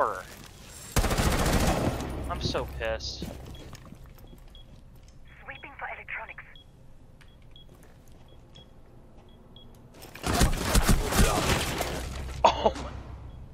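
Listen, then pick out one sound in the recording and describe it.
Rapid gunfire bursts from a video game.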